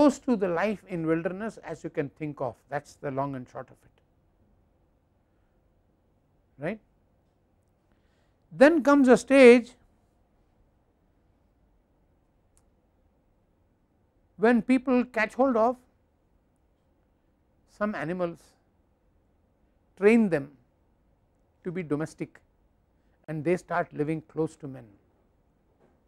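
An elderly man speaks calmly into a clip-on microphone, pausing between phrases.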